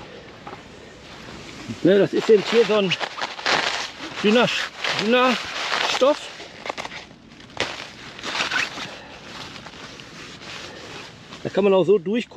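Tent fabric rustles and crinkles under a hand.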